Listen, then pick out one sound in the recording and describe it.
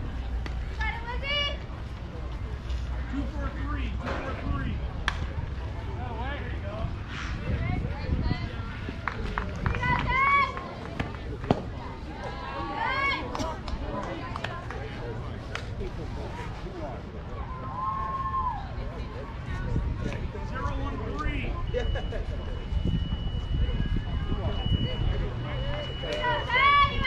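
Young players shout and cheer from across the field.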